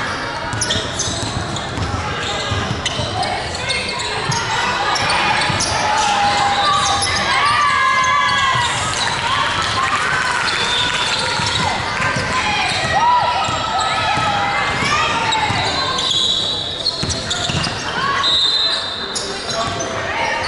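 Young women call out to each other during play.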